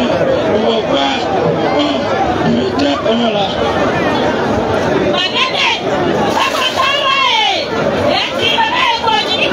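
A crowd of people chatters and calls out loudly outdoors.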